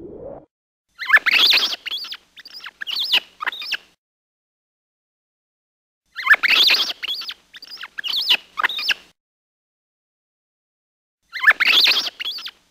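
A small rodent squeaks and chatters in short, shrill bursts.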